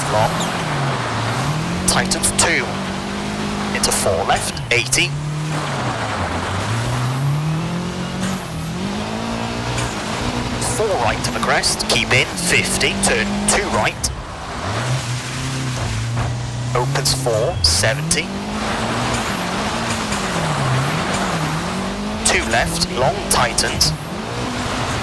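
A rally car engine revs up and down as the gears change.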